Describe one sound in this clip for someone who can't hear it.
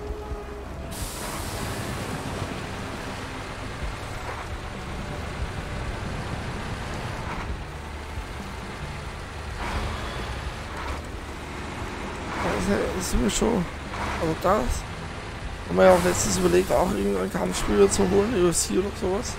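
A truck engine rumbles low and steady as the truck drives along a dirt road.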